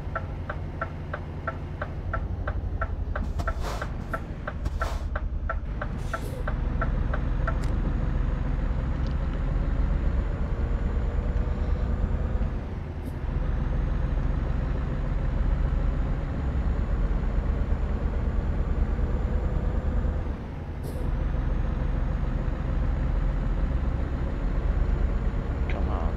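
A truck engine rumbles low and steady, rising and falling with gear changes.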